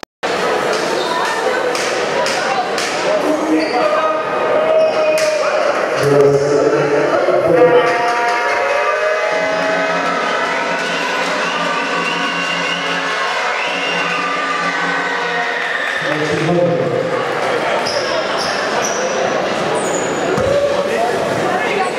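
A large crowd murmurs in an echoing indoor hall.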